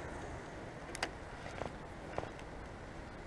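A fishing reel clicks a few times.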